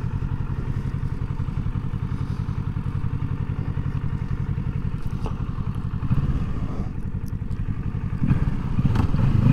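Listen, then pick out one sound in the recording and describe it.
A motorcycle engine idles with a steady, low rumble.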